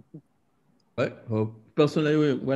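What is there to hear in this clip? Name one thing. A second man answers over an online call.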